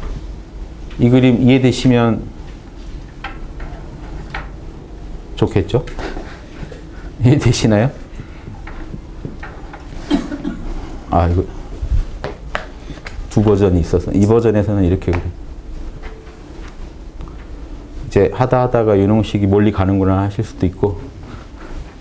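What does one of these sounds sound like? A middle-aged man speaks through a microphone in short bursts, explaining.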